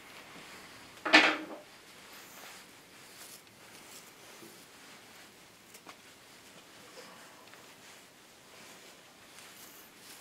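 Clothing brushes and rustles right against the microphone.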